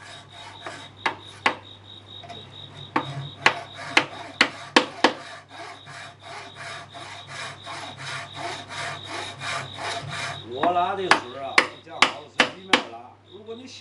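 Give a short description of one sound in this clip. A wooden mallet strikes a chisel with sharp knocks.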